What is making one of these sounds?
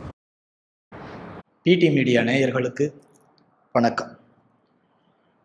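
A young man speaks to the listener in a clear, lively voice through a microphone.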